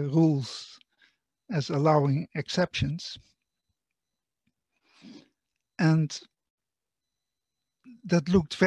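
An elderly man lectures calmly over an online call, in short phrases with pauses.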